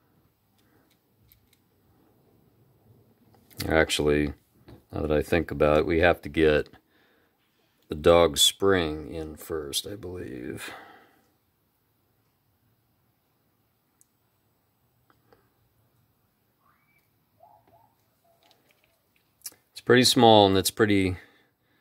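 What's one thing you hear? Small metal parts click softly as they are handled.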